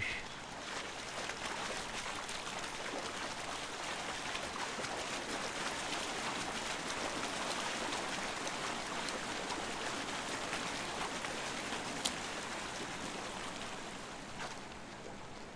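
A waterfall pours and splashes steadily into a pool.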